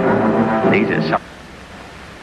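A man speaks in a low voice, close by.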